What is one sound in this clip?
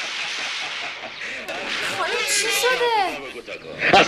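A young woman speaks loudly and with animation close by.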